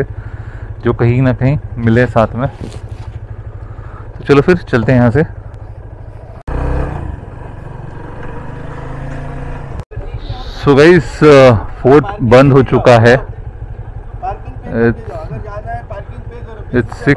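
A motorcycle engine idles and rumbles steadily.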